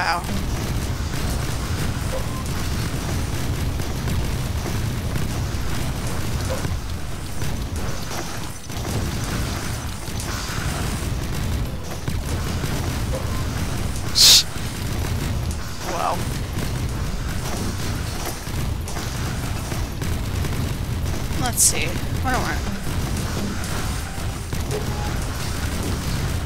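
Video game shots and explosions crackle rapidly and without pause.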